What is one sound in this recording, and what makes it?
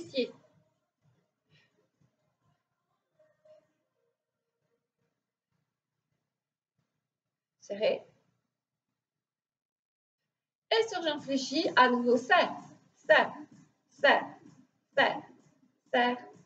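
A woman speaks clearly and calmly to the listener.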